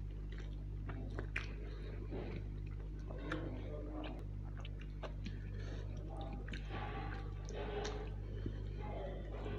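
A man chews food with his mouth open, close to the microphone.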